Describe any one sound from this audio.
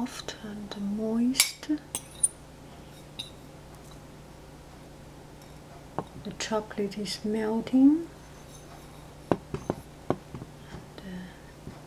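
A fork clinks lightly against a plate.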